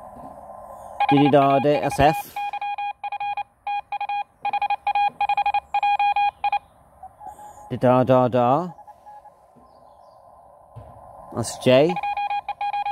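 A radio receiver whistles in sweeping, swooping tones as it is tuned.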